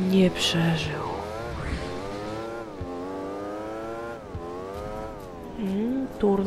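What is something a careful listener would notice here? A small kart engine whines and rises in pitch as it speeds up.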